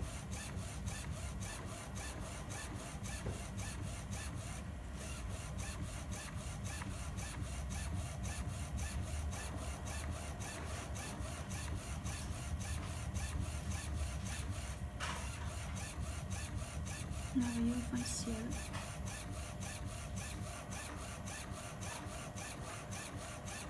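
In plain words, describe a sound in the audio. A printer's head shuttles back and forth with a fast, steady ticking.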